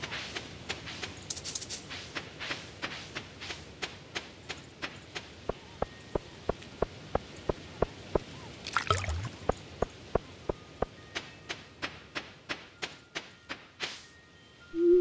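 Game footsteps patter quickly on soft ground.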